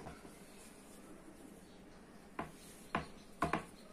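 Dough thumps and slaps on a wooden board.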